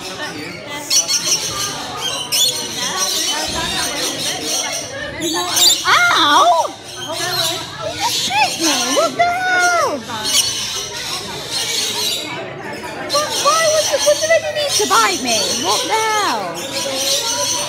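A small parrot laps and slurps nectar from a plastic cup.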